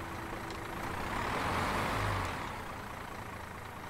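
A truck engine rumbles as it drives past.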